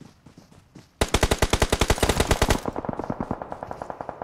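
An automatic rifle fires in rapid bursts close by.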